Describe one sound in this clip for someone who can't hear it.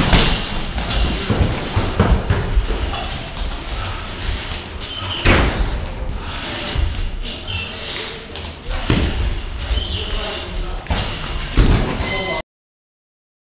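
Boxing gloves thump against each other in sharp bursts of punches.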